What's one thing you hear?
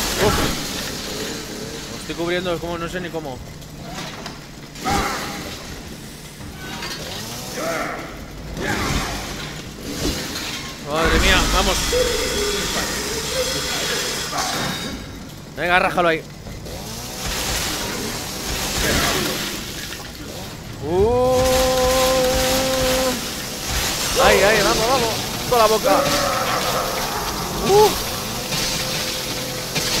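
A chainsaw engine roars and revs.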